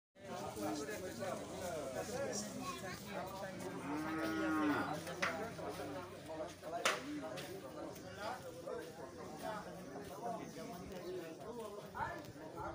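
A crowd of men talk over one another outdoors, close by.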